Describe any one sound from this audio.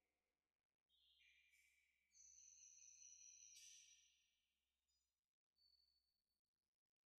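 A brass singing bowl rings.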